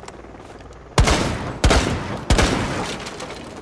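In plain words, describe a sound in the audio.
Rifle shots crack loudly and ring out in a few quick bursts.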